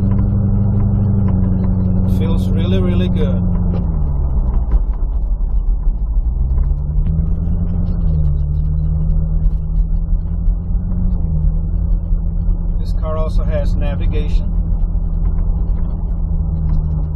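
A car engine hums steadily inside the cabin, its pitch dropping and rising as it shifts.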